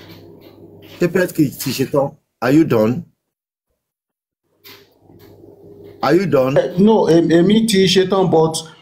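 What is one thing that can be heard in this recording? A man speaks with animation, heard through a phone microphone.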